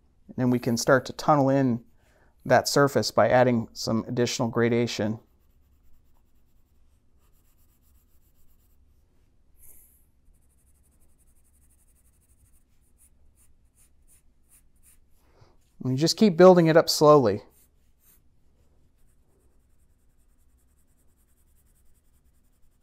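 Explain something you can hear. A graphite pencil scratches across paper as it shades.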